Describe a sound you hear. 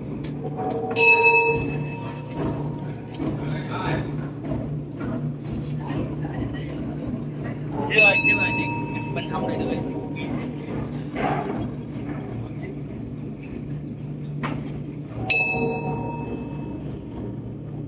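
A bell rings out clearly and lingers as it is struck several times.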